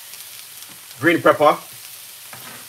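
Chopped pepper is tipped into a hot pan with a rustling clatter.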